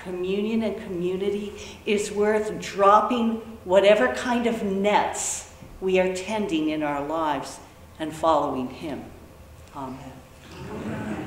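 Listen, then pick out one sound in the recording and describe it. A middle-aged woman speaks calmly and with feeling in a large echoing room.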